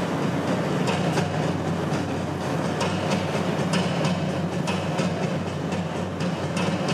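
Ice skate blades scrape and hiss across the ice.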